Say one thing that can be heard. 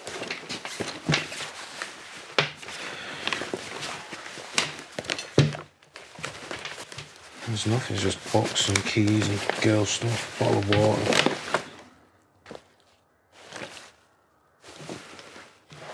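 Objects rustle and clatter as a man rummages in a bag.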